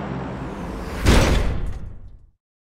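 A heavy crate lands on the ground with a loud thud.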